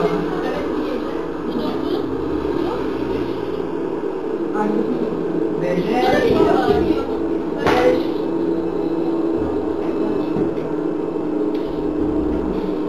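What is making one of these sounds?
Young men and women talk over one another nearby, with animation.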